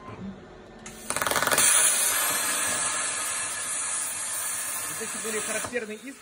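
A plasma torch roars and hisses loudly as it cuts through steel.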